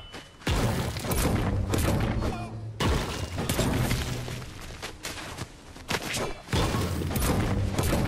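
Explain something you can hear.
A pickaxe strikes rock with sharp, repeated clanks.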